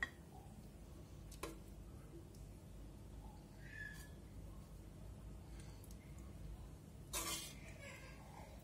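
A ladle scrapes and stirs through thick stew.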